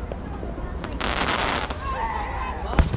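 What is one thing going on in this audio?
Fireworks crackle after bursting.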